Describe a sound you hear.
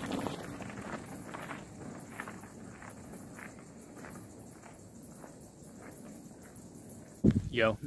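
Bicycle tyres crunch along a gravel track, fading off.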